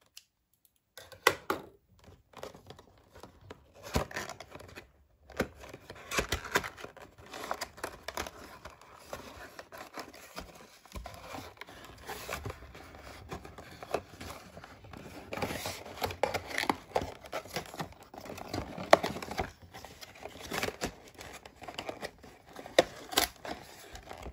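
Cardboard packaging rustles and crinkles as it is pulled open.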